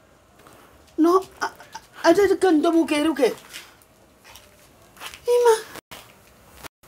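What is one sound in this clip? A young woman answers quietly, close by.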